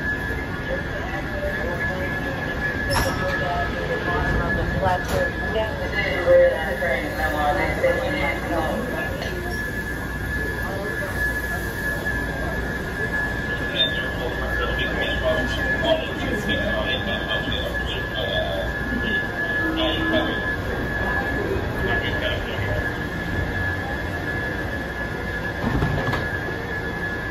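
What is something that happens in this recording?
A train idles with a steady high hum.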